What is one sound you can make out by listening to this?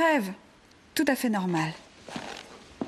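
A woman answers gently, close by.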